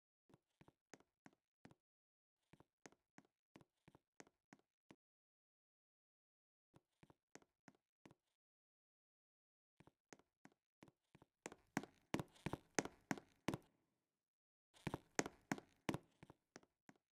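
Footsteps tap quickly on a hard surface, stopping and starting.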